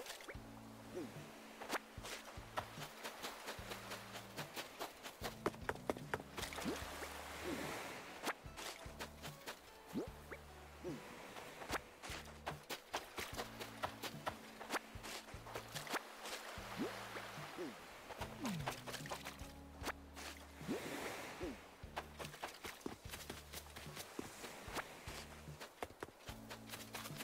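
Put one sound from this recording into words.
Footsteps patter quickly on sand.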